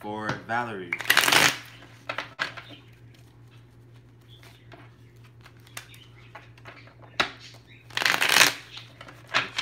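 Cards shuffle and riffle with a quick rush.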